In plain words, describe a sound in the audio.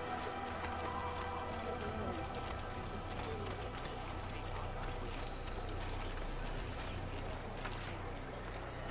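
Footsteps run quickly over a dirt path.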